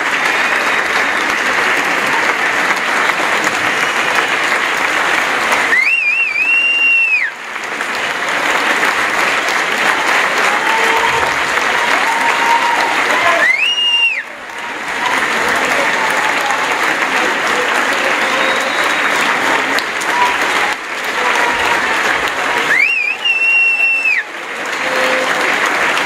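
A large audience applauds and cheers in a hall.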